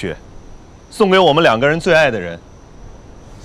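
A man speaks softly and calmly nearby.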